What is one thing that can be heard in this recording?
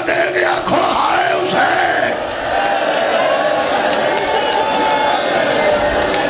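A man recites loudly through a microphone in an echoing hall.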